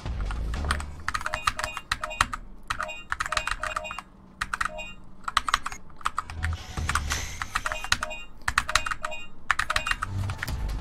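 Short electronic menu beeps sound in quick bursts.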